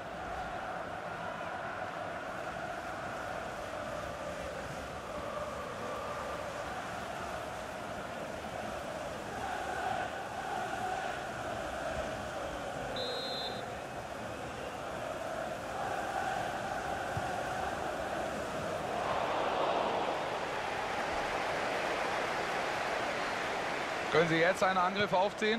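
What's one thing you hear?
A large stadium crowd chants and sings steadily, echoing loudly.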